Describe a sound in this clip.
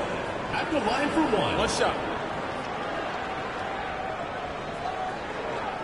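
A large crowd murmurs and cheers in an echoing arena.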